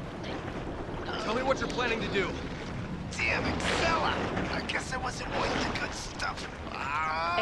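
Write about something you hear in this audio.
A man groans and speaks in a strained, hoarse voice.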